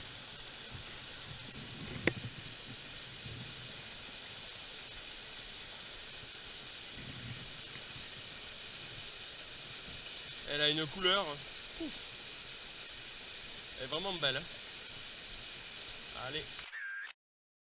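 A small waterfall splashes steadily close by.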